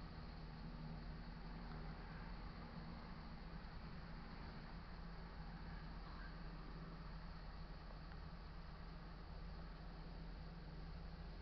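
A car drives along the road in the distance, slowly coming closer.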